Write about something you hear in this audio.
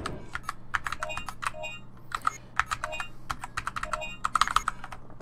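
Short electronic menu beeps sound.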